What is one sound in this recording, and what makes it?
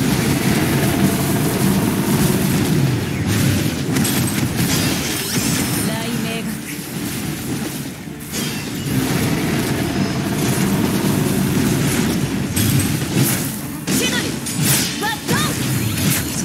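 Electric blasts crackle and zap in quick bursts.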